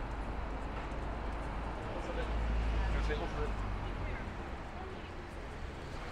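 A small hatchback drives past close by.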